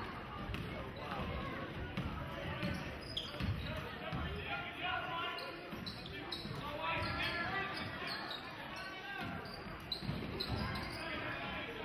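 A crowd murmurs and chatters in a large echoing gym.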